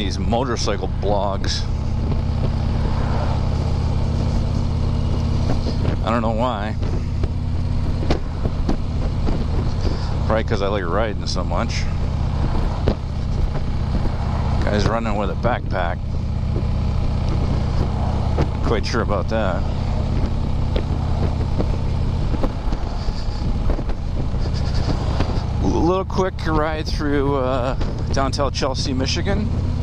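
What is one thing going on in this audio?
A motorcycle engine rumbles steadily at a low pitch as it rides along.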